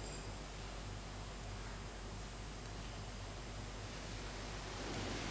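A choir of men and women sings softly in an echoing hall.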